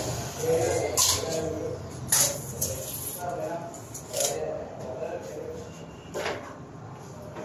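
Loose cables rustle and clatter as they are handled.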